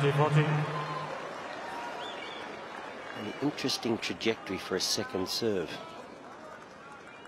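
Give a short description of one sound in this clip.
A crowd applauds and cheers in a large open arena.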